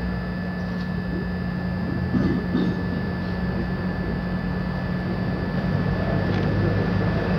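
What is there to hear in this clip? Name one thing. A woman speaks into a microphone over loudspeakers in a large room.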